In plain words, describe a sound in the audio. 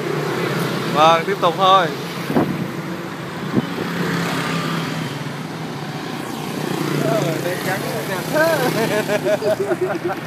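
Motorbike engines hum steadily nearby.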